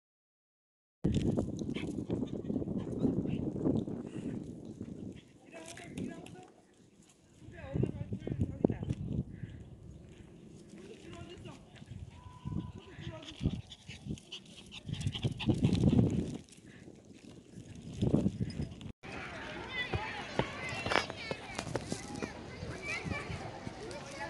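Small dogs' paws patter on paving stones.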